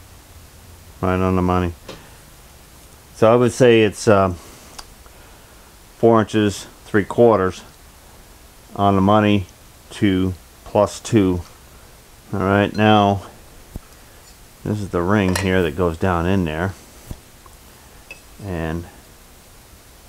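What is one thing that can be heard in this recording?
An older man talks calmly and close by, in short phrases with pauses.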